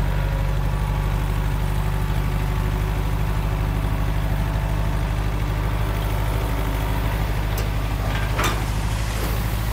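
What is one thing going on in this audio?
Loose dirt slides and pours out of a tipping truck bed.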